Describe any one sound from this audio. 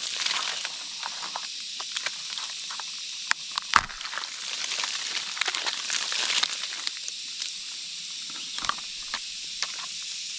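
Fingers tap and scrape against dry tree bark, close by.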